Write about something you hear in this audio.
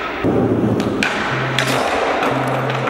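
A skateboard snaps and clacks as it flips.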